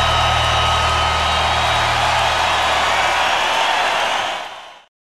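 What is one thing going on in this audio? A large crowd cheers and screams loudly in a big open arena.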